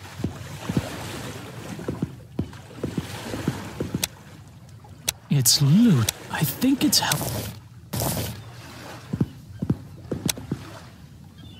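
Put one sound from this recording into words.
Footsteps knock on a wooden deck.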